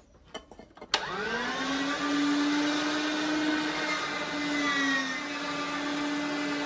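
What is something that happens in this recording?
An electric meat grinder motor starts up and hums steadily.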